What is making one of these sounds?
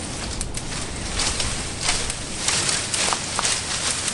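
Leafy branches rustle as a man pulls at a bush.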